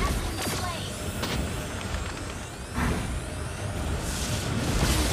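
Game characters strike with sharp hits.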